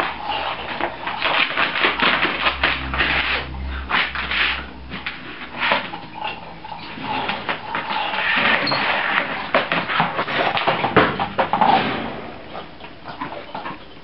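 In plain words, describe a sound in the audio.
A puppy's claws tap and scrape on a tiled floor.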